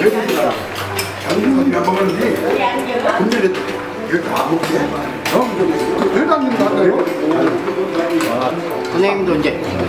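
Dishes and spoons clink on a table.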